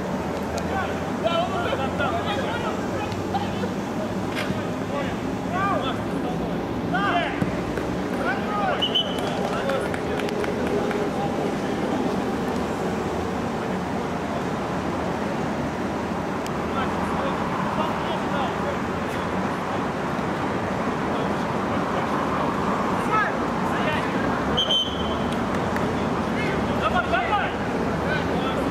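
Men shout and call out across an outdoor pitch.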